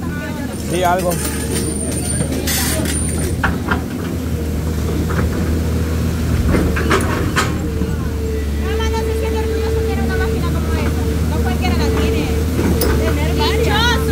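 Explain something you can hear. A digger bucket scrapes and knocks against rocks.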